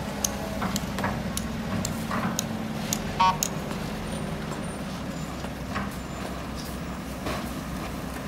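An excavator bucket scrapes against stones.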